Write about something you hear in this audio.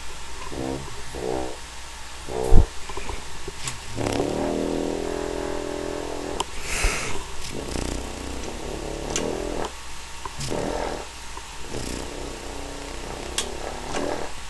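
A French horn plays a slow, wavering run of notes up close.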